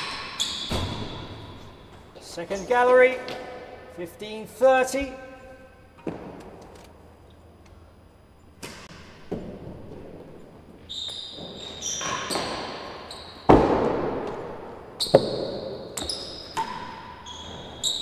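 A ball bounces off hard walls and floor in a large echoing hall.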